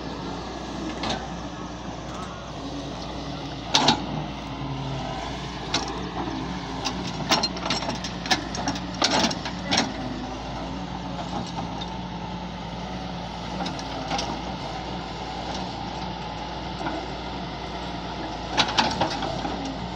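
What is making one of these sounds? A metal bucket scrapes and thuds against dry ground.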